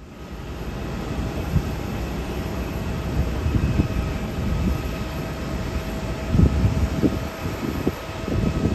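A twin-engine jet airliner lands and rolls out on a runway far off, with a low roar.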